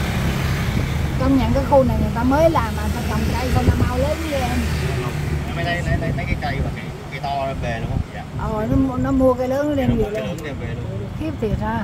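A man talks nearby over the engine noise.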